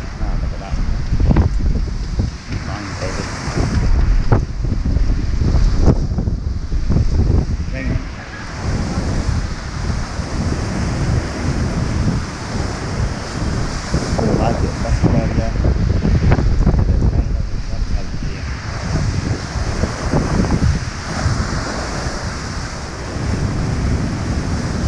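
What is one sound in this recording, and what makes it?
Rough sea waves crash and churn against a stone wall.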